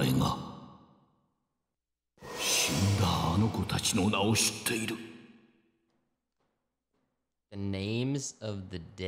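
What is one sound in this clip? An elderly man speaks slowly and gravely.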